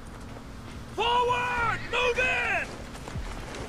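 A man shouts orders with urgency.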